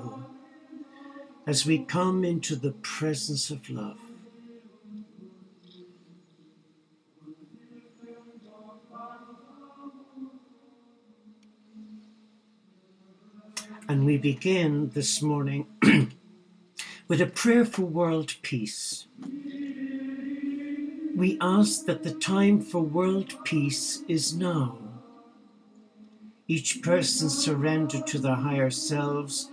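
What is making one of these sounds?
An elderly man speaks calmly and closely into a microphone, with pauses.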